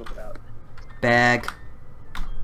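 A short electronic game tone chimes.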